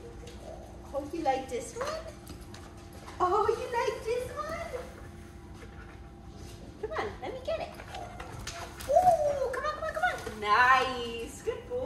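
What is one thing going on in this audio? A young woman talks to a dog in an excited, high, sing-song voice nearby.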